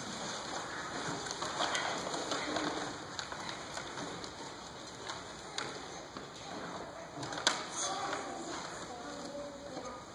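Children and adults chatter softly in a large echoing hall.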